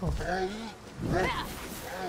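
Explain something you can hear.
A heavy weapon swings through the air with a whoosh.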